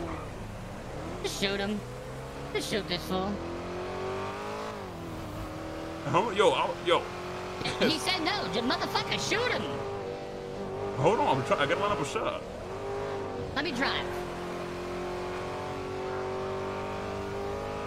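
A car engine hums steadily, rising and falling slightly in pitch as the car speeds along.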